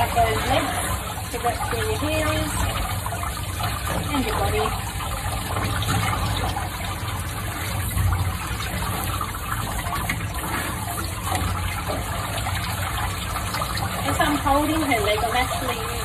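Water sprays from a shower head onto a wet animal.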